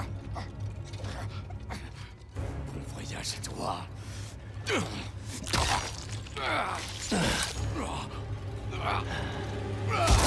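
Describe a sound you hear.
A man speaks in a low, menacing voice.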